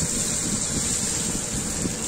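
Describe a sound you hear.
Water pours into a sizzling pan.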